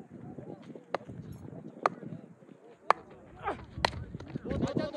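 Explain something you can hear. A cricket bat hits a ball with a sharp crack.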